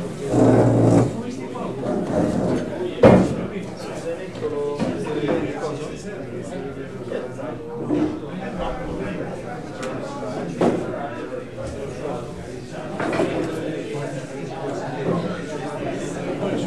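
A man talks in a room with a slight echo.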